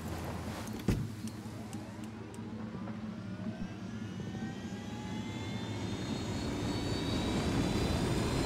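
A helicopter engine starts up and whines higher and higher as its rotor spins faster.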